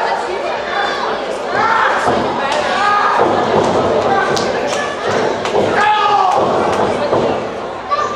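Wrestlers' bodies thud onto the ring mat.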